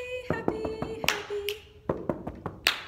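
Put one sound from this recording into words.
A young woman sings a short high note nearby.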